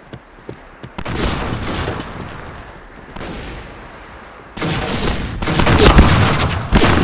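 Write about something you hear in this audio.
Shotgun blasts boom with a short echo.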